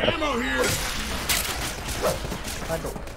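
A gun fires several sharp shots.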